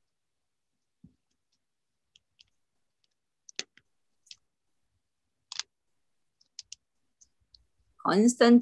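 Small wooden parts click and tap as they are handled.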